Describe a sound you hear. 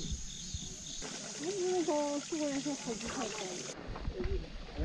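Water trickles from a spring spout onto rocks.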